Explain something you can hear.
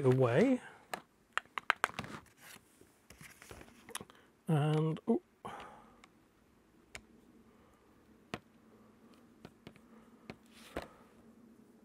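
Small metal tools click and snap.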